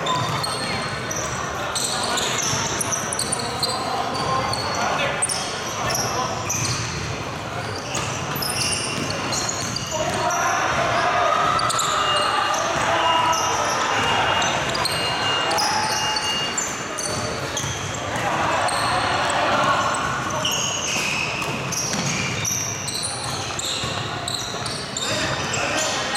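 Sneakers squeak sharply on a wooden court in a large echoing hall.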